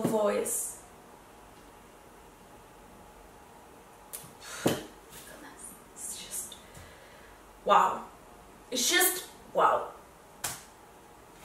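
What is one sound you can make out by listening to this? A young woman speaks close by in short, lively bursts.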